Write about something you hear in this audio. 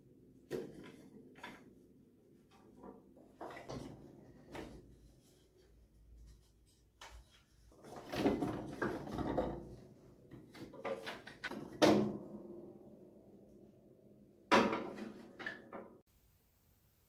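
Wooden parts of a piano knock and clatter as they are handled.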